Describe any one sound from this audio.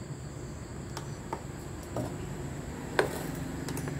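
An induction cooktop beeps as its buttons are pressed.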